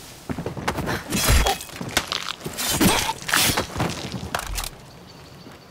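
Blows and scuffling thud in a hand-to-hand struggle.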